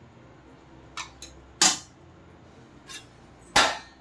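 A metal spoon scrapes and taps against a steel bowl.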